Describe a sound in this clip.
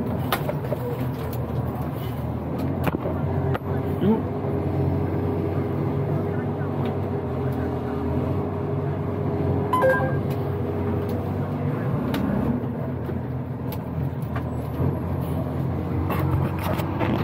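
A truck's diesel engine rumbles steadily inside the cab.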